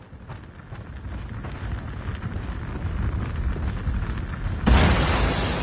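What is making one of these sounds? Footsteps thud quickly across the ground.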